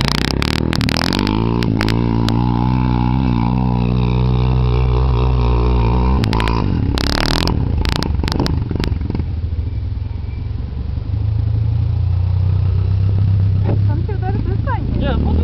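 A quad bike engine revs hard as the bike climbs a hill.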